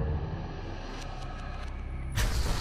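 A short menu click sounds.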